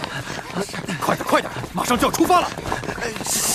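A young man urges others on in a hurried voice.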